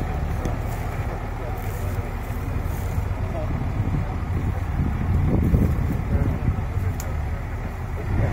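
A heavy truck engine rumbles loudly as the truck crawls over rough ground.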